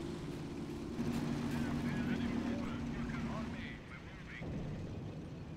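Explosions boom and gunfire crackles in short bursts.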